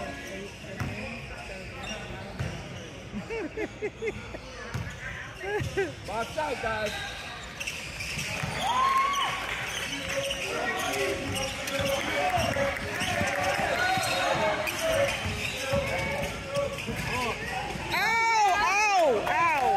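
Spectators and players call out and chatter in the background.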